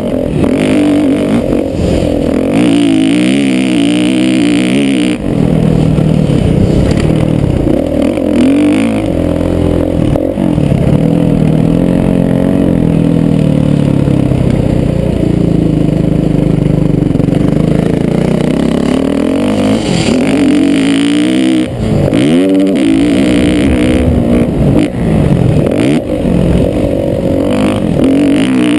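A dirt bike engine revs hard, rising and falling in pitch.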